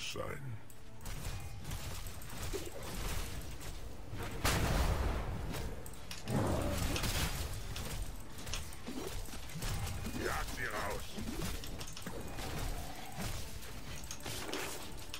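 Spell blasts and weapon clashes burst out in a fast game battle.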